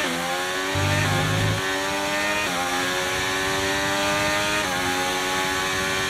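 A racing car engine screams at high revs, climbing in pitch and dropping with each gear change.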